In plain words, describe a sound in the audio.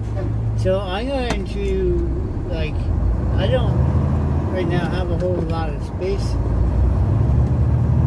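A vehicle engine revs up as the vehicle pulls away.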